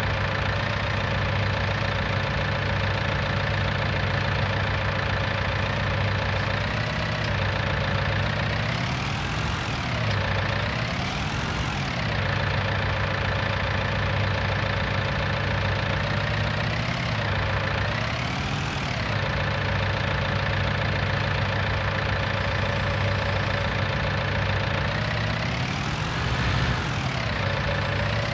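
A loader's diesel engine hums steadily and revs up and down in short bursts.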